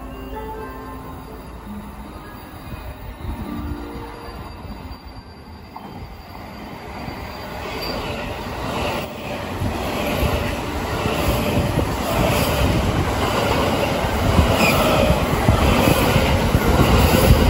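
A train rumbles into the station, growing louder as it passes close by.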